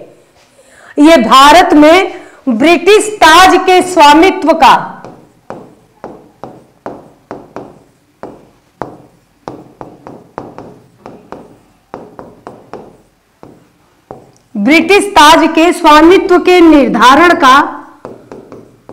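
A young woman speaks loudly and with animation into a close microphone.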